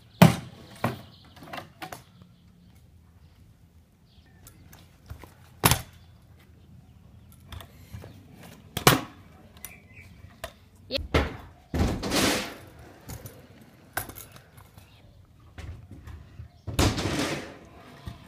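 A scooter lands hard on concrete with sharp clacks.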